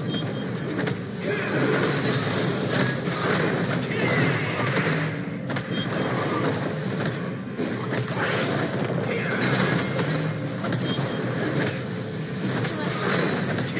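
Spell effects and weapon hits clash repeatedly in a game fight.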